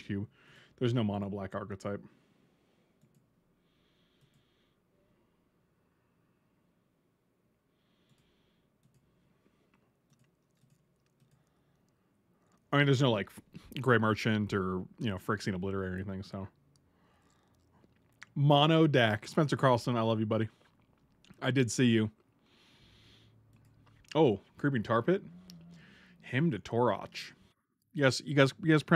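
A middle-aged man talks with animation, close to a microphone.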